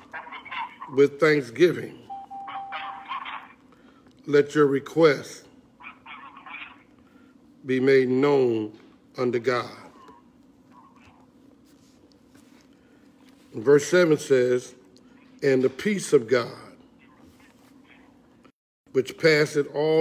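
An elderly man speaks slowly and calmly into a microphone, pausing between phrases.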